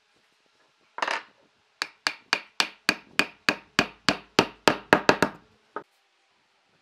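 Wooden blows knock a log joint firmly into place.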